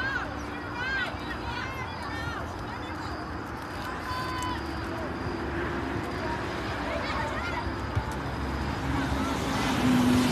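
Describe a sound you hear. Young women shout to each other across an open field in the distance.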